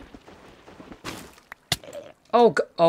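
A block cracks and breaks apart.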